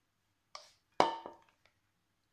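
A plastic jug knocks against a glass bowl.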